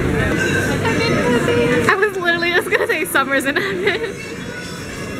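A young woman talks excitedly close to the microphone.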